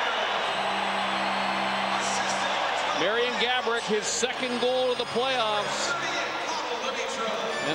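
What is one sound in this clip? A large crowd roars and cheers in a big arena.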